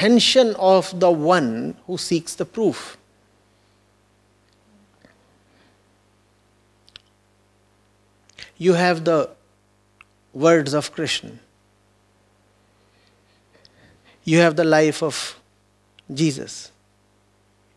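A man speaks slowly and thoughtfully into a microphone, with long pauses.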